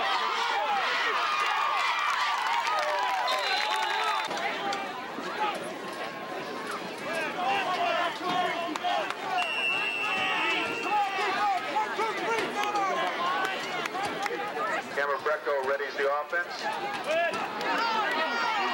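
A crowd of spectators cheers and chatters loudly in an open-air stadium.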